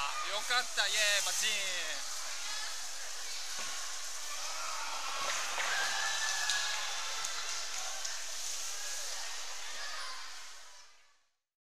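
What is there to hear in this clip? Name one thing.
A crowd of children chatters and cheers.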